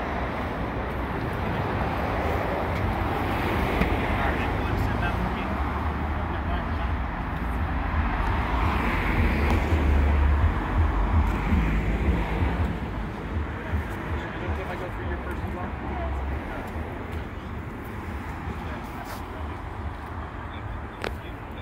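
Men talk nearby in low voices, outdoors.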